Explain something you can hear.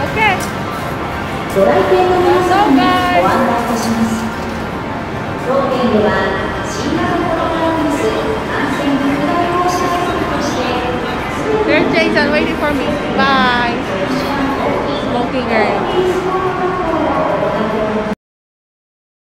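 Arcade machines play electronic jingles and music.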